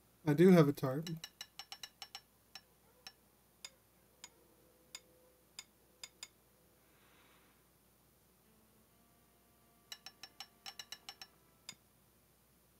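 A hammer taps repeatedly on a nail in wood.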